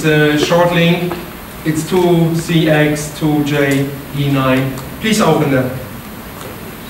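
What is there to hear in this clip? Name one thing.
A man lectures calmly through a microphone in a room with some echo.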